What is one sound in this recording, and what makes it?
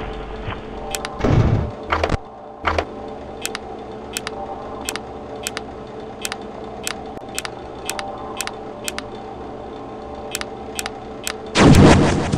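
A small fan ticks steadily.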